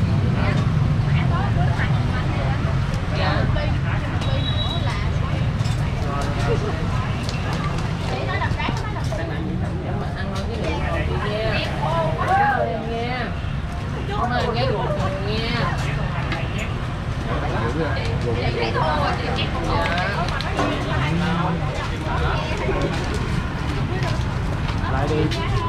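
Motorbike engines idle and pass by.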